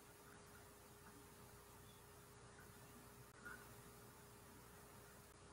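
An elderly woman speaks quietly over an online call.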